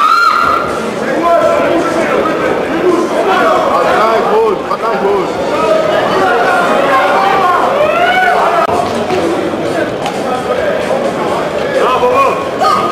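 Men and women shout and cheer loudly in a large echoing hall.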